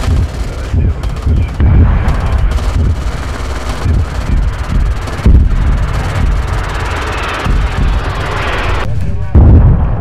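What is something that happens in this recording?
A jet plane roars overhead.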